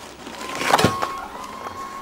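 A hand rustles crinkly plastic packaging.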